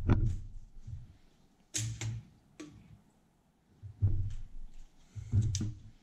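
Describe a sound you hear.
Pieces of cooked meat drop softly onto paper towels.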